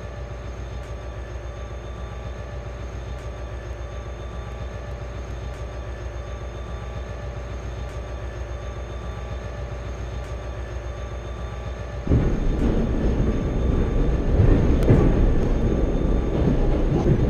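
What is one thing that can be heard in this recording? A train engine hums steadily as the train rolls along the tracks.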